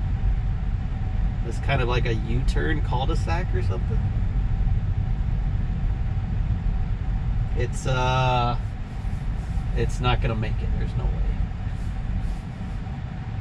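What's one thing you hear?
A car's tyres rumble low and steady on a paved road.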